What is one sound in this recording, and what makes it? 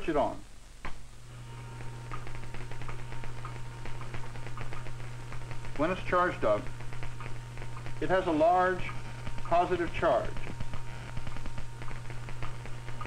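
An electric motor hums steadily.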